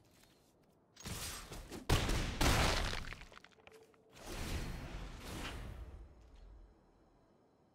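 A magical whoosh and shimmer play as a card is cast.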